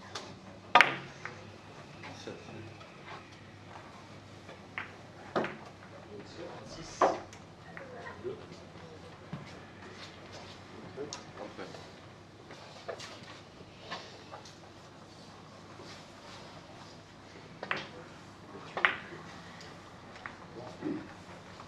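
Billiard balls click against each other on nearby tables.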